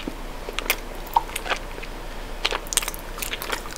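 A woman bites into chocolate close to the microphone.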